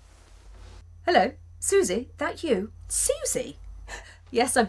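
A middle-aged woman speaks warmly into a phone, close by.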